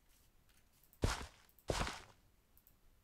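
A hoe strikes soil with short dull thuds.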